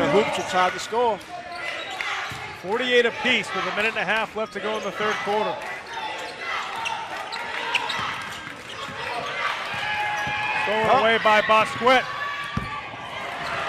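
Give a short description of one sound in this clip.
Sneakers squeak sharply on a wooden court in an echoing gym.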